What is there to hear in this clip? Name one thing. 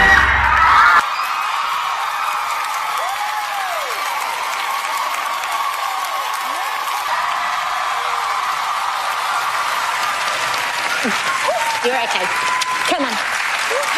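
A large crowd cheers and applauds loudly in an echoing hall.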